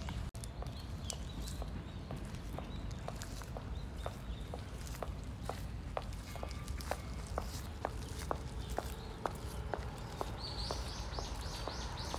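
Footsteps tap on wet paving stones.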